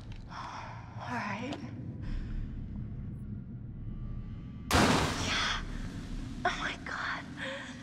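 A young woman gasps and pants in fear.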